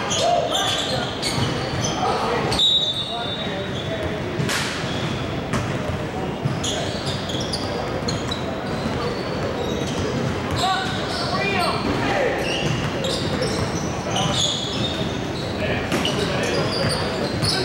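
Young players call out to each other in a large echoing gym.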